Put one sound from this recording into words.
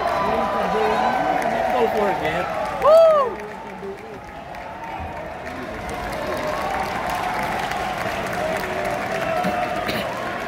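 A large crowd cheers and chants in an echoing indoor arena.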